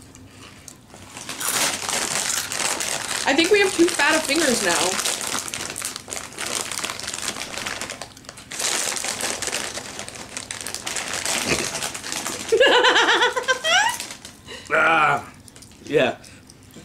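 Crisp chips crunch as they are eaten.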